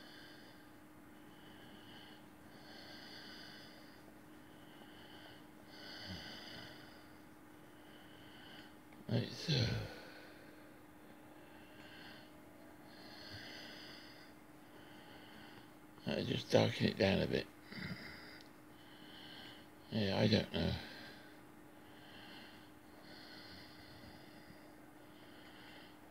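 A pencil scratches softly on paper in short, repeated strokes.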